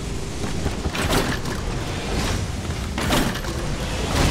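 A blade swooshes through the air with a quick whoosh.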